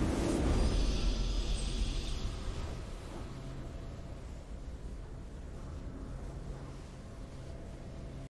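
A victory fanfare plays, then fades.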